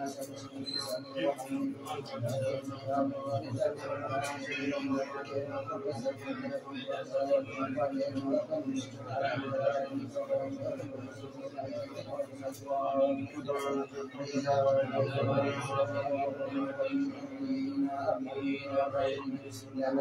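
A man chants a recitation in a steady, sing-song voice close by.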